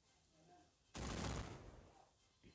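A cannon fires with a short burst.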